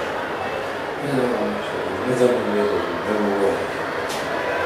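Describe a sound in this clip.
A man calls out short commands loudly.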